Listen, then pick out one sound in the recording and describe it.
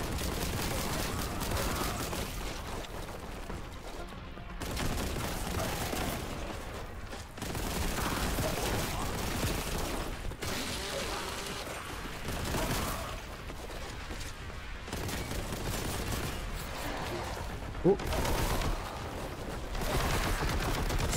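Guns fire rapidly in bursts.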